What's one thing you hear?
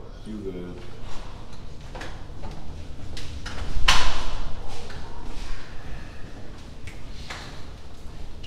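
Footsteps move along a carpeted corridor.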